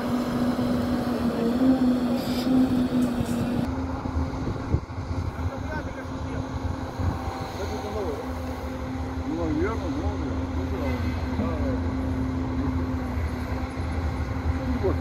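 A heavy excavator engine drones steadily nearby.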